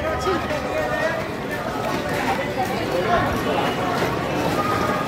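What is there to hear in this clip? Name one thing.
A crowd of people chatters and shouts nearby, outdoors.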